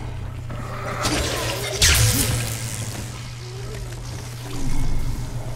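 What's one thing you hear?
An electric weapon crackles and zaps.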